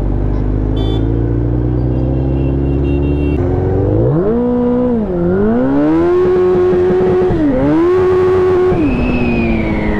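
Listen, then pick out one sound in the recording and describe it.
A motorcycle engine idles low, then revs up and roars as it accelerates through the gears.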